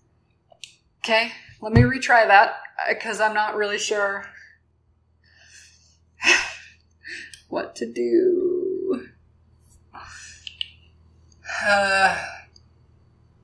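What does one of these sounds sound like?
A young woman speaks with animation through a webcam microphone.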